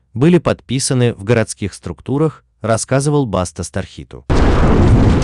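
A man speaks with feeling into a microphone on stage.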